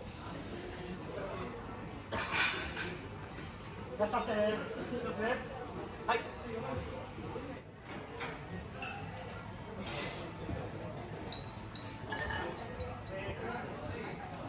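Dishes and utensils clink lightly on a hard counter.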